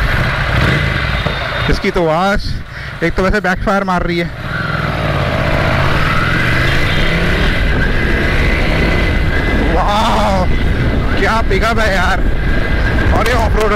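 A motorcycle engine rumbles steadily as the bike rides along.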